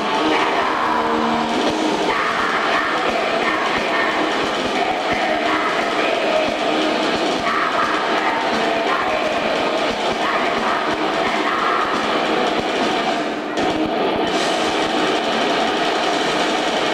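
A live rock band plays loudly.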